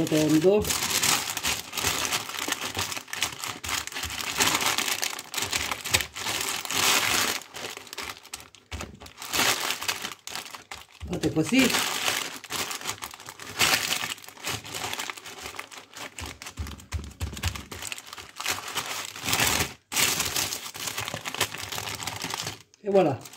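Plastic wrap crinkles and rustles as it is rolled and pressed.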